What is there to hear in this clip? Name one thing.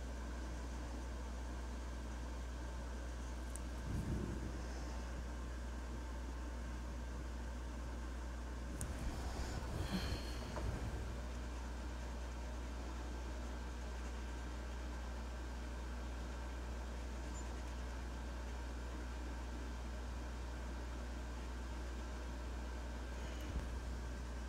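A marker tip squeaks and scratches softly on paper.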